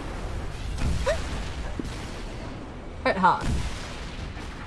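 A young woman speaks briefly into a microphone, with animation.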